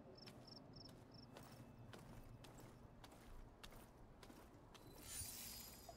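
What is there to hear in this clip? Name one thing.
Footsteps crunch softly on the ground.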